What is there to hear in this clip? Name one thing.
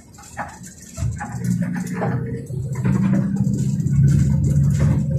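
A bus engine rumbles, growing louder.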